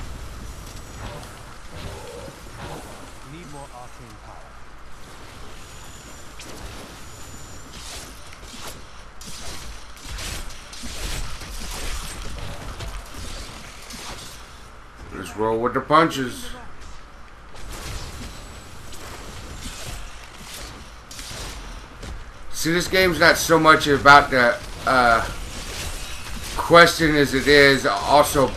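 Magic spells crackle and whoosh in quick bursts.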